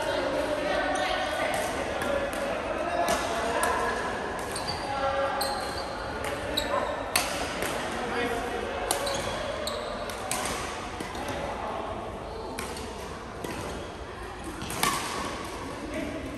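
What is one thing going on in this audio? Voices of young men murmur and call out across the hall.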